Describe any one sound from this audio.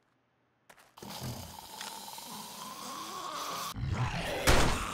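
A zombie growls close by.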